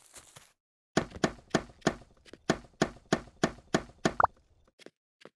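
A pickaxe chips rapidly at a block.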